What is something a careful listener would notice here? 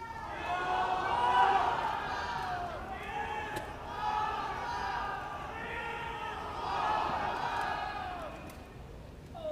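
A large crowd sings along loudly in a big echoing arena.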